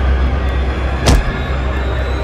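A man falls and thuds onto the ground.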